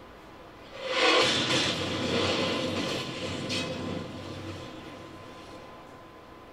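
A deep rumbling blast roars and slowly dies away.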